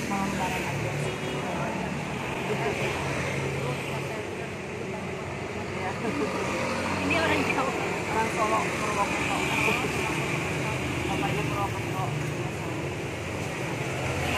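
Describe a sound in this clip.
A second woman answers calmly close by.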